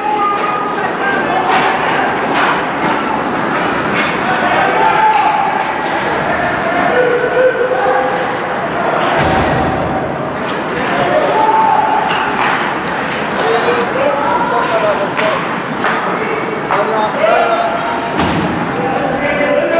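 A crowd murmurs and shouts in a large echoing arena.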